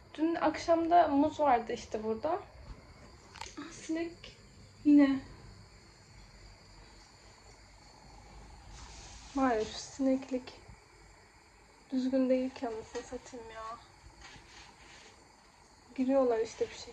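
A young woman talks calmly and close by, in short bursts with pauses.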